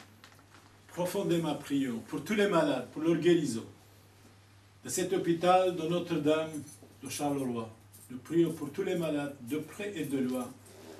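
An elderly man chants a prayer in a deep, steady voice, close by.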